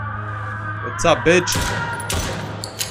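A gun fires a few sharp shots.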